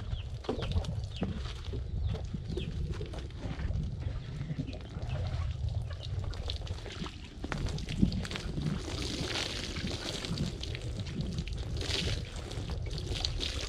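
A horse's hooves shuffle on dry dirt.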